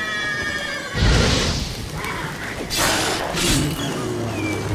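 A burst of flame whooshes loudly.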